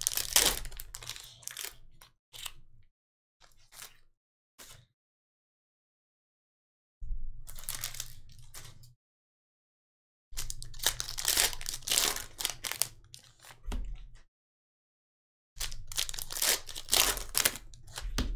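Foil wrappers crinkle and rustle as hands tear them open.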